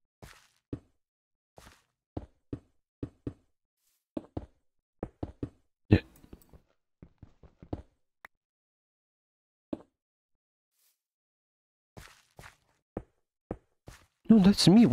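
Footsteps tap softly and evenly on stone.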